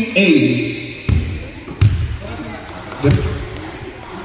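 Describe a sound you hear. A basketball bounces on a hard floor in an echoing hall.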